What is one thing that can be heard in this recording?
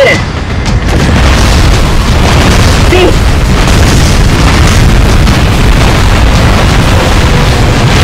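Bombs explode with deep booms.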